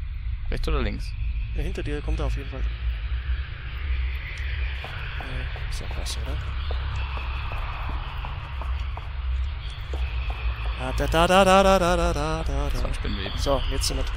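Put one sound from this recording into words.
Footsteps scrape slowly on a stone floor.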